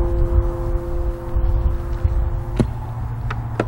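An electric guitar plays outdoors at a distance.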